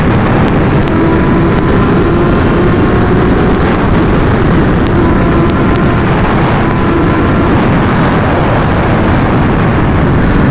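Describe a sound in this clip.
A motorcycle engine roars steadily at speed.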